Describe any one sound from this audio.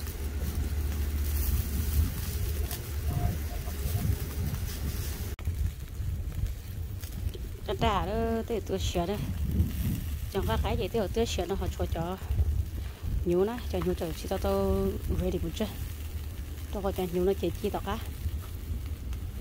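Meat sizzles and crackles softly over hot coals.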